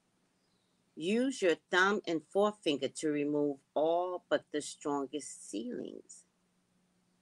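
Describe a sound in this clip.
A woman reads aloud calmly, close to a microphone.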